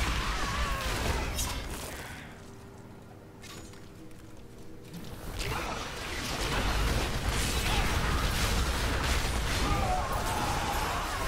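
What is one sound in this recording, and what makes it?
Magic spells crackle and burst in a video game.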